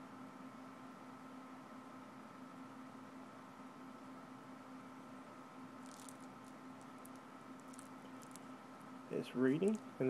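A game console hums steadily.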